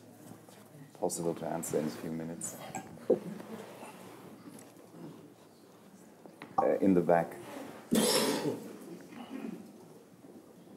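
A middle-aged man speaks calmly through a microphone in a hall.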